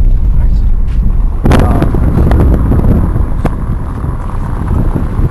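Wind blusters outdoors, rumbling steadily against the microphone.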